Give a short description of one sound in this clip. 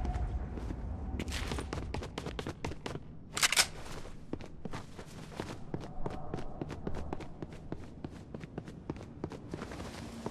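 Footsteps thud quickly across a wooden floor.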